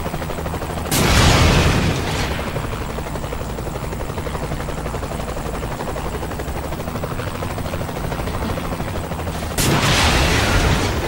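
A rocket launcher fires with a sharp whoosh.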